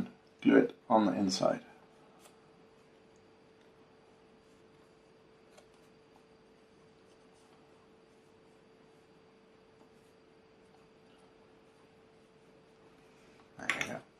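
A thin wooden frame taps and creaks softly as hands turn it.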